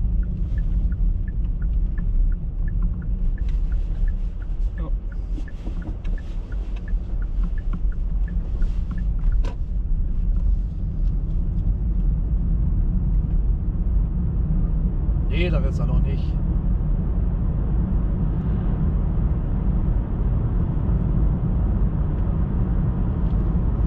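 Tyres rumble on a snowy road.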